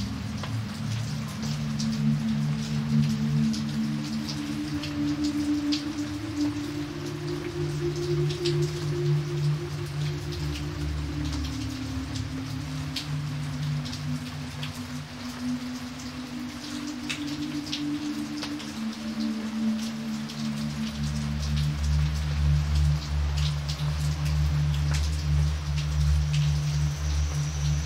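Heavy rain splashes steadily onto a flooded surface.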